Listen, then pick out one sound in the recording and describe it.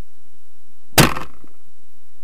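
A glass jar slams into a wooden log with a sharp thud.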